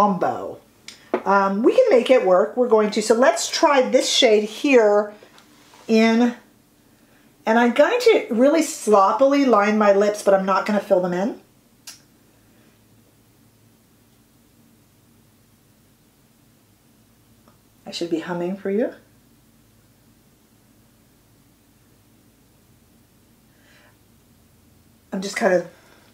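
A woman talks closely and calmly into a microphone.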